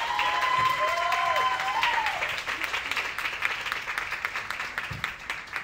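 An audience applauds in a large room, then the clapping fades.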